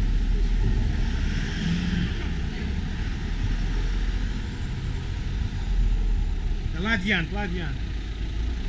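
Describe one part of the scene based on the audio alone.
A queue of cars rolls slowly along an asphalt road, engines rumbling.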